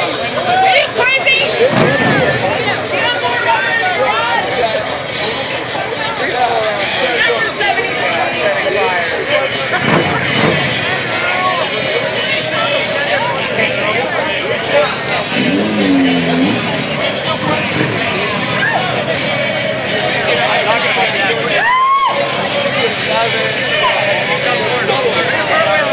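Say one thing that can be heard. A crowd of men talk and shout loudly nearby.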